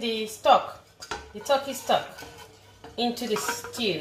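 A plastic spatula scrapes the inside of a pan.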